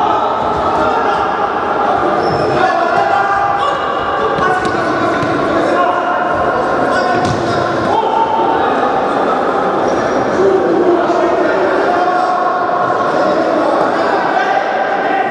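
A ball is kicked with sharp thuds on a hard indoor floor.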